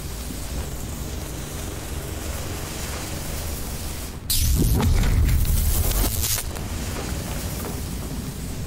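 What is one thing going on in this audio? A creature scrabbles across a metal floor.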